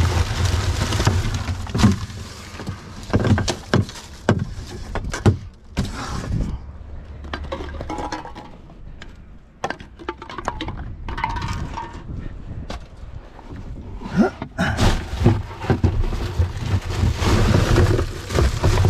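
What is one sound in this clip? Plastic bottles and wrappers crinkle and rustle as hands sort through rubbish.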